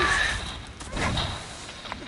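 A powerful energy blast roars and crackles.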